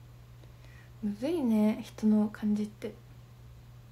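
A young woman speaks briefly and softly, close to a microphone.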